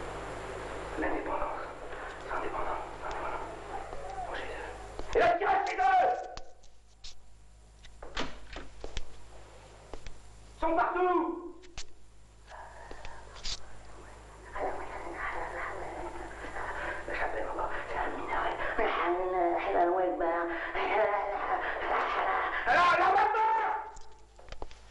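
A middle-aged man speaks loudly and with agitation nearby.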